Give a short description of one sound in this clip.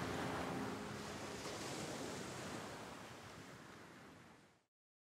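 Ocean waves break and wash up onto a shore, fading away.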